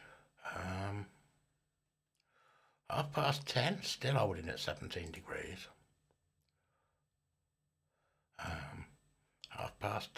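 A middle-aged man talks calmly into a microphone, close by, with pauses.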